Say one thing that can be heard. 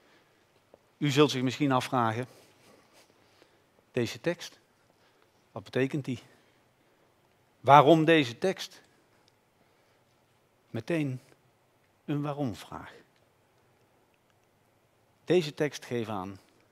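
A man speaks slowly and calmly through a microphone, with long pauses.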